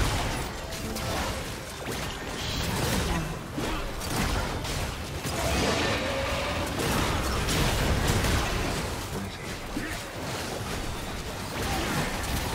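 Game spell effects crackle, whoosh and boom in a busy battle.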